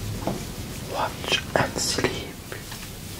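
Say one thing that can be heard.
A man speaks softly nearby.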